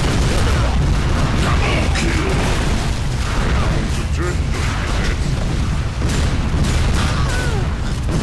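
Rocket launchers fire with loud whooshes.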